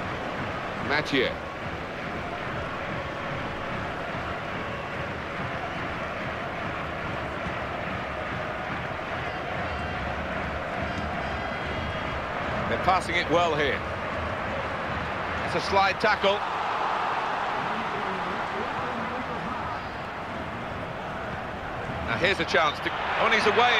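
A football is kicked on a pitch.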